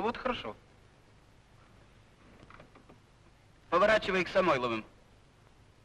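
A man speaks loudly, close by.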